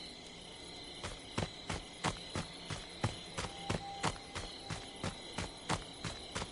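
Footsteps crunch steadily over grass and twigs outdoors.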